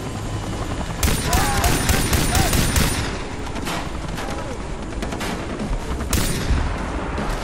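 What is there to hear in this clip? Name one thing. A pistol fires a rapid series of loud shots.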